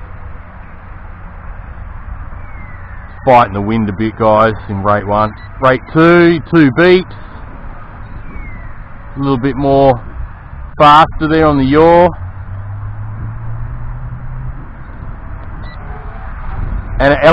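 A small drone buzzes steadily overhead.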